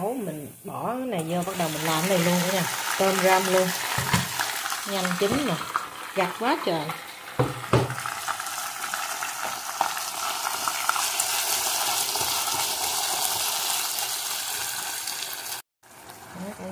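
Shrimp sizzle loudly in a hot pan.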